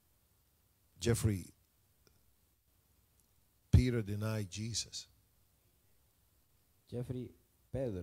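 A man preaches through a microphone in a large room, speaking in short, emphatic bursts with pauses between them.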